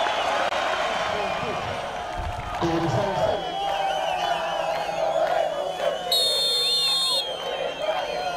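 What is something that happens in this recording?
A stadium crowd cheers and chants.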